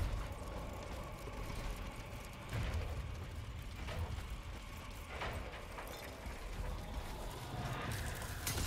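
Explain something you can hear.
Footsteps thud on wooden planks and stone.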